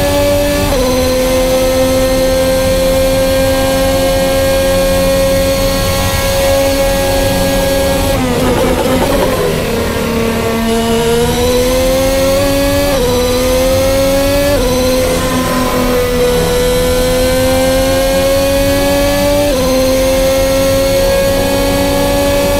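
A racing car engine screams at high revs, dropping sharply each time it shifts up a gear.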